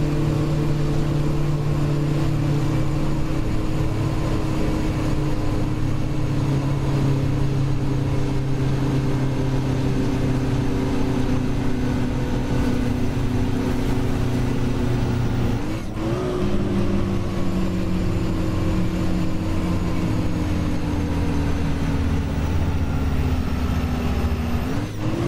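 A bus engine drones steadily, shifting gear with a brief dip and then rising in pitch.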